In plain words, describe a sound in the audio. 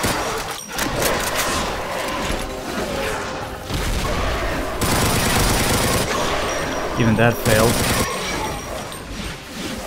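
Monsters growl and screech.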